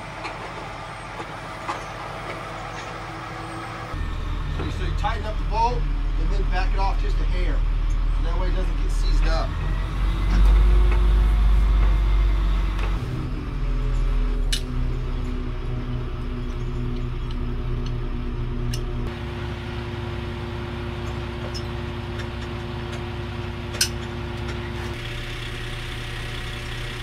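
A crane's diesel engine rumbles steadily nearby.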